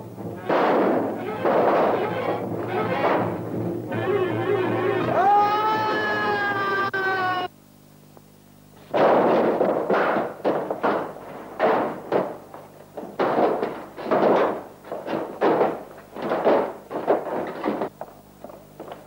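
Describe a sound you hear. Blows thud sharply in a fistfight.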